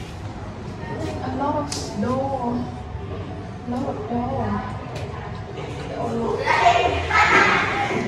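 A young woman speaks cheerfully close by.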